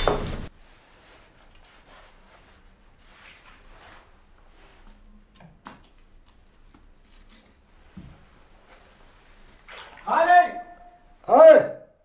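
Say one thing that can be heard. Metal pans clink and scrape.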